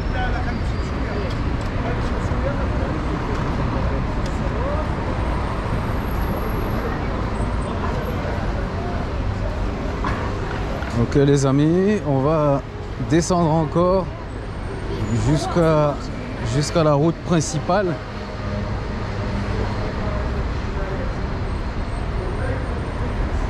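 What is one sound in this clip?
Traffic hums steadily along a city street outdoors.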